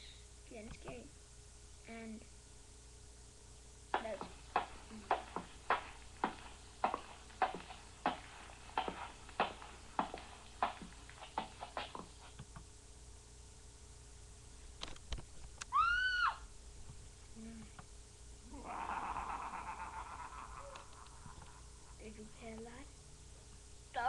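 A young boy speaks softly close by.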